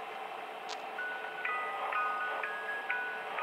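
A music box plays a tinkling tune.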